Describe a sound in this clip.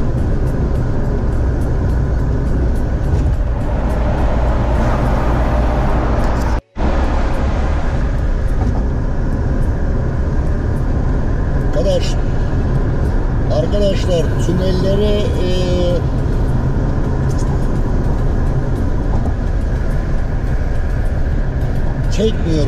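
A car's engine and tyres rumble steadily as it drives along a road.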